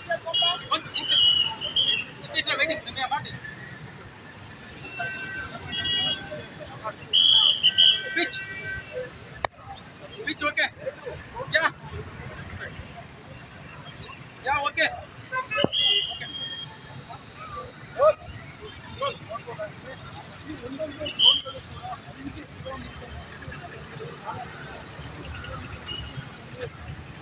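Traffic rumbles faintly in the distance outdoors.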